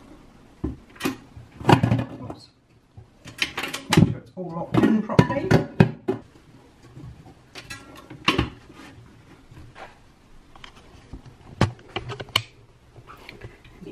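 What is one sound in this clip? A metal mixing bowl clanks and clicks as it is fitted into place.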